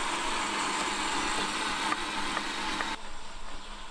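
A knife chops onion on a wooden board.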